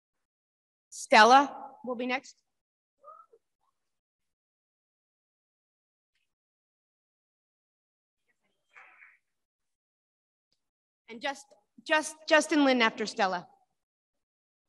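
A young woman speaks over a microphone.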